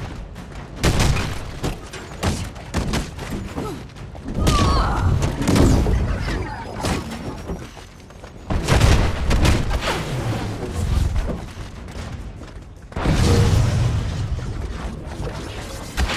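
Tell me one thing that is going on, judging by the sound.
Blows strike and thud in a fight.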